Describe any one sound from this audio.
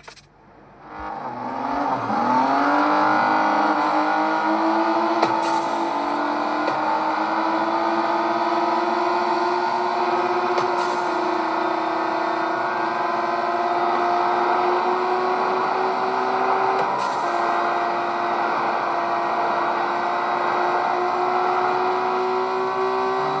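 A racing car engine revs up and roars steadily at high speed.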